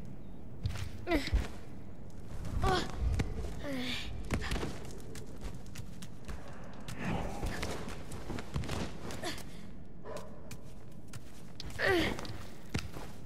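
A large creature lets out high, wavering cries.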